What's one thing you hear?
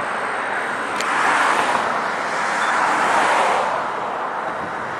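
A car passes by on a road, its tyres swelling into a rush and fading.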